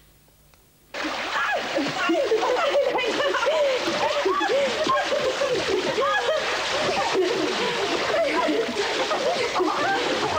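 Children shout and shriek excitedly close by.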